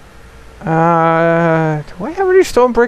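A young man sings out a long note into a close microphone.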